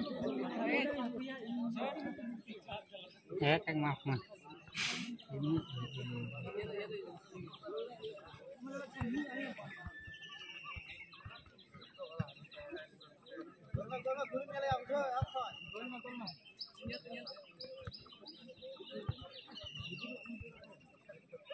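A crowd of young men chatter and call out outdoors.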